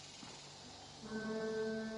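An alphorn blows a long, steady low note.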